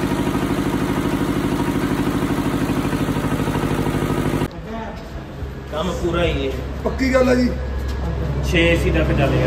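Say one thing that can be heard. A diesel engine runs with a fast, steady chugging.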